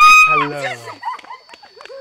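Young women scream loudly nearby.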